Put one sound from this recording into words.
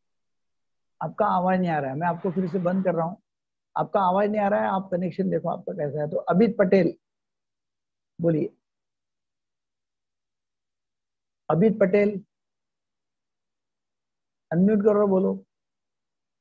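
A man speaks through an online call, in short bursts with pauses.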